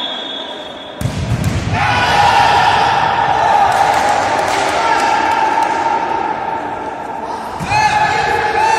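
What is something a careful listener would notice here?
A ball is kicked hard with a thud in a large echoing hall.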